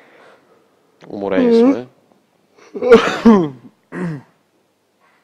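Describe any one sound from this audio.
A second young man talks and laughs into a close microphone.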